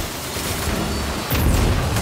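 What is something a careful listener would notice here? An electric blast crackles and zaps.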